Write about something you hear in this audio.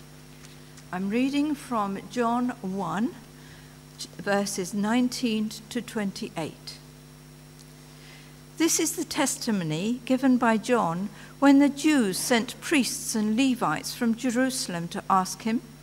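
An elderly man speaks calmly into a microphone over loudspeakers in a large echoing hall.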